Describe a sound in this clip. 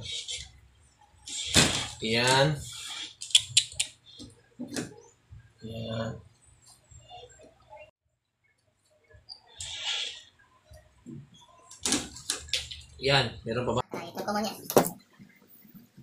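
Pliers snip through wire with sharp clicks.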